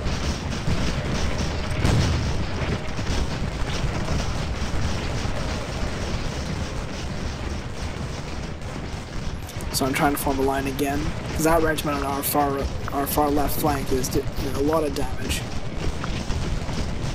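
Muskets and cannons fire in rumbling, crackling volleys.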